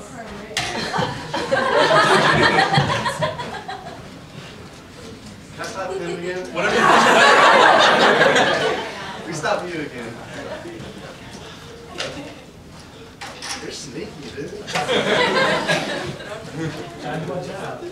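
A crowd of young people laughs and cheers loudly in bursts.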